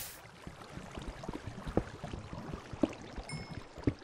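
A pickaxe taps repeatedly on stone.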